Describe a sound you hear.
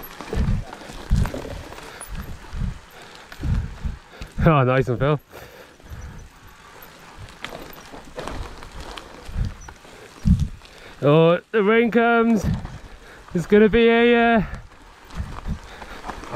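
Bicycle tyres roll and crunch over a rough dirt trail.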